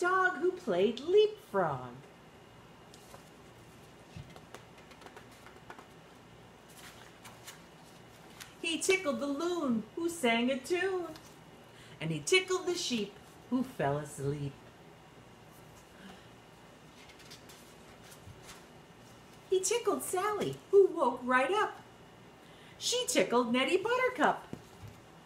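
A middle-aged woman reads a story aloud with animation, close by.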